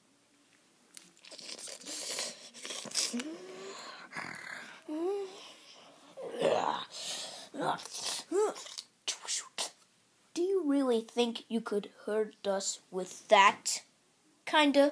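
Hands rummage through a pile of plastic toys and cloth, rustling and clattering close by.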